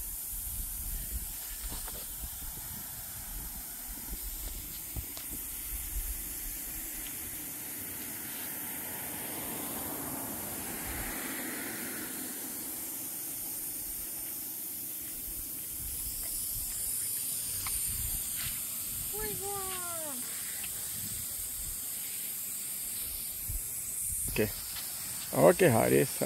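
Lawn sprinklers hiss steadily outdoors, spraying water over grass.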